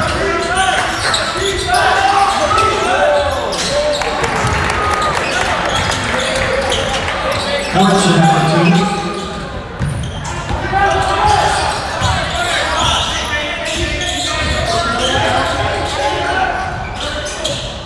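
A crowd murmurs and chatters in an echoing gym.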